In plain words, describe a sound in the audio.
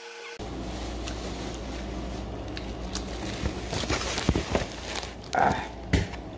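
A young man bites into crunchy food and chews close by.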